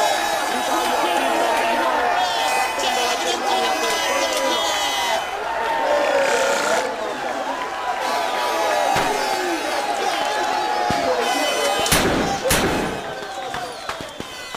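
A crowd of men cheers and chants loudly in an echoing room.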